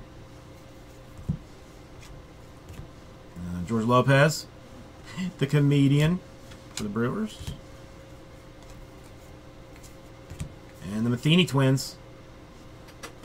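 Cards rustle and shuffle as they are handled.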